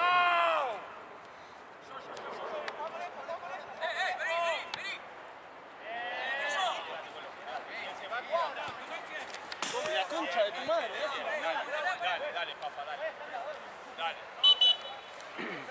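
Young men shout and call out to each other across an open pitch.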